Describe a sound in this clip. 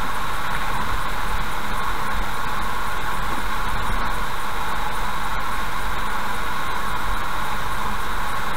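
Tyres hum steadily on a wet road.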